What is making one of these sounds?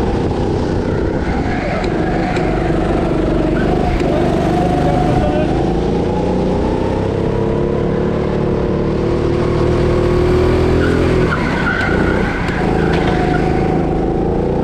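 A go-kart motor drones at speed, rising and falling in pitch through the bends.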